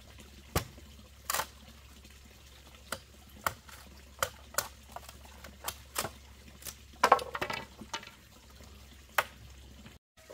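A machete chops into bamboo with sharp knocks.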